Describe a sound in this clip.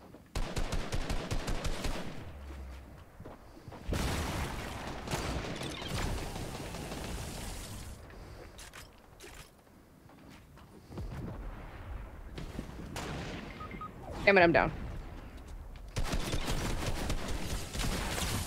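Rapid gunfire bursts out in sharp volleys.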